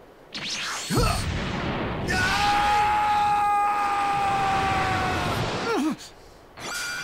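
An energy blast roars steadily.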